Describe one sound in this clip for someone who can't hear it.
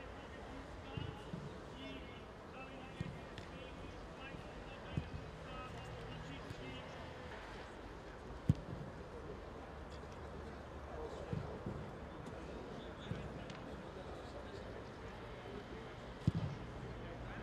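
Footballs are kicked with dull thuds outdoors.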